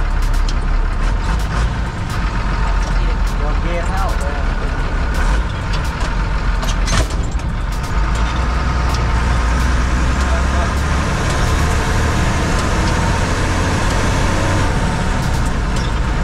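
A heavy diesel engine rumbles loudly and steadily up close.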